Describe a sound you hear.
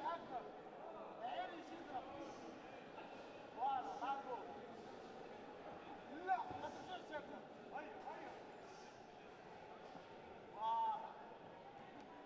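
Shoes squeak sharply on the ring floor.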